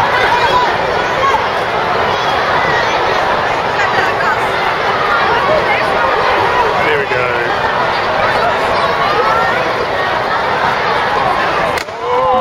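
A crowd murmurs and chatters in a large open stadium.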